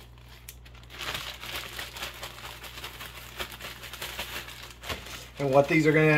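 A plastic bag crinkles and rustles as it is shaken.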